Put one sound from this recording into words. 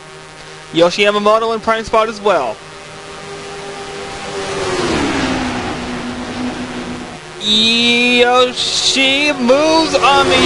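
Racing car engines roar at high revs.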